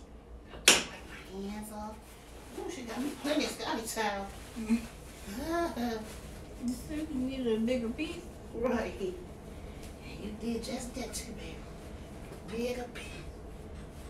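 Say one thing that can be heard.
A woman speaks casually, close by.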